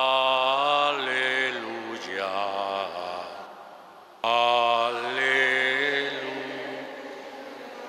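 A man chants slowly through a microphone in a large echoing hall.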